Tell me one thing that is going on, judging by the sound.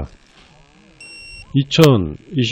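A handheld electronic device beeps.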